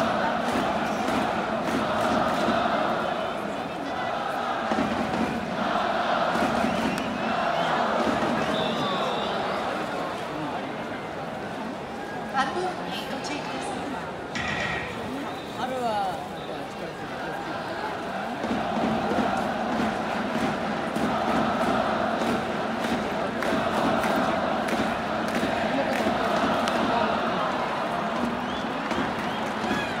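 A large crowd chants and cheers loudly in an echoing stadium.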